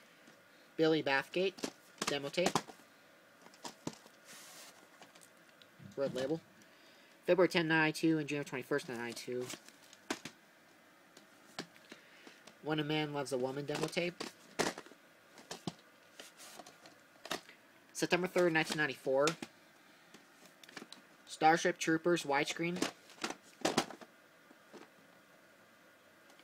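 Plastic tape cases clack and tap as hands handle them.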